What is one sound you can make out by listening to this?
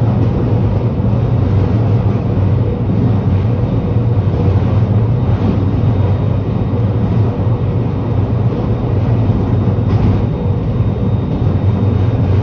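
A vehicle's engine rumbles steadily from inside as it drives along a road.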